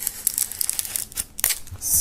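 A knife blade slits plastic wrap.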